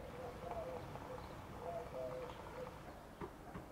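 Water trickles from a tap into a cup.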